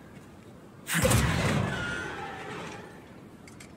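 Heavy metal doors are pushed open with a grinding creak.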